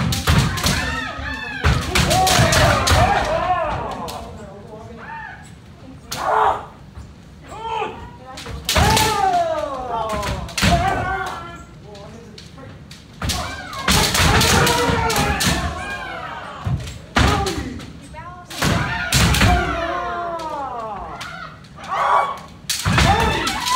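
Bare feet stamp on a wooden floor.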